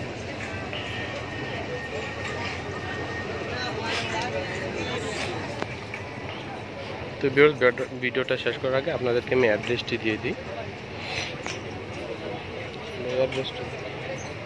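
Several people chatter in the background throughout.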